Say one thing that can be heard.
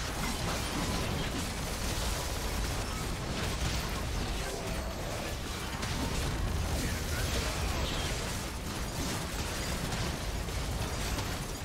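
Game battle effects clash and whoosh.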